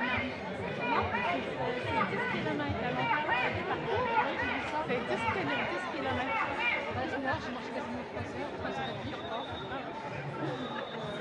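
A crowd of people talks and chatters all around outdoors.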